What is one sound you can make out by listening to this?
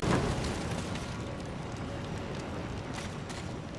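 Footsteps scrape on rock.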